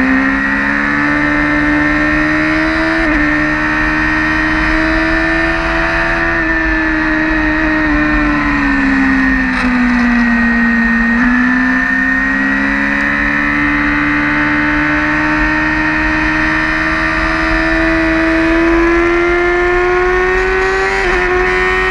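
A motorcycle engine roars loudly up close, its pitch rising and falling with the gear changes.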